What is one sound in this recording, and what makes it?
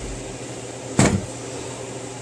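A glass cup knocks down on a metal counter.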